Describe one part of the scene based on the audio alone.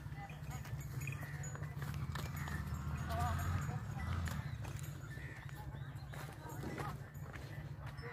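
Cattle hooves thud softly on bare earth.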